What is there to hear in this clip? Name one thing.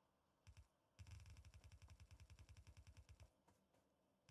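Quick footsteps patter across hard ground.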